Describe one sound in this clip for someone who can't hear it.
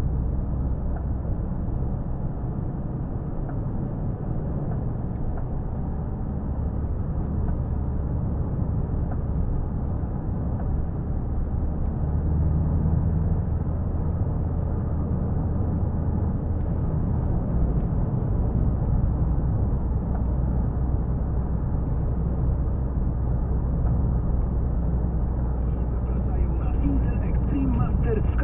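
A car engine hums steadily inside the car as it drives along.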